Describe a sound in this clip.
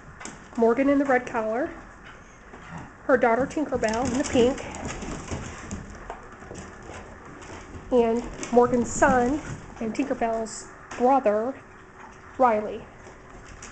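A dog whines and yelps in short bursts.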